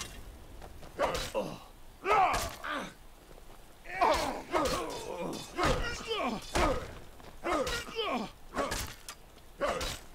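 A man groans and grunts in pain.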